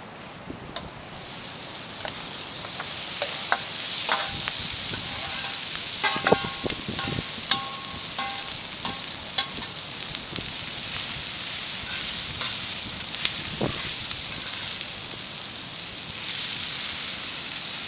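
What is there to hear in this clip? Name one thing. Chopped onions drop onto a hot griddle and sizzle steadily.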